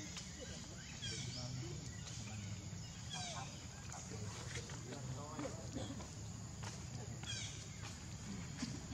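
A baby monkey squeals in short, high cries.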